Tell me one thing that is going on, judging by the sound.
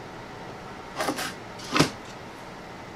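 Wooden boards knock sharply together a few times.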